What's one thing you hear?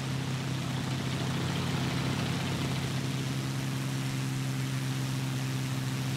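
Wind rushes past the aircraft.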